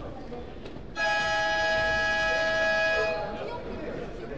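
A game buzzer sounds loudly and steadily in a large echoing hall.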